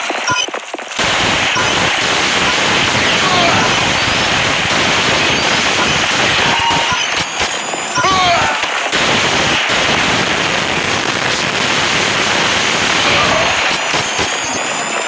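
Rapid automatic gunfire rattles.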